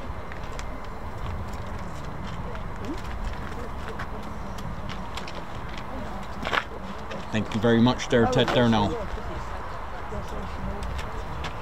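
A flag flaps in the wind.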